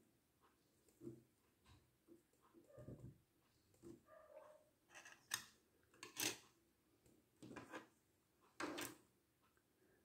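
A small plastic figure clicks and taps as it is handled and set down.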